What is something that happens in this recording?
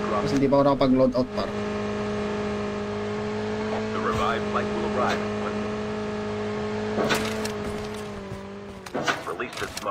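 A motorbike engine hums steadily in a game.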